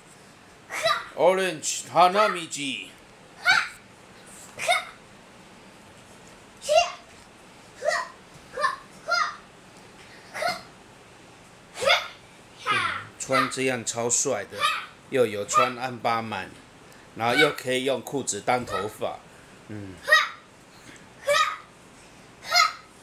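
A young boy shouts and sings loudly, close by.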